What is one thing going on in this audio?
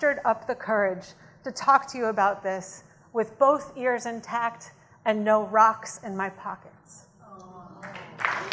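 A woman reads aloud clearly into a microphone.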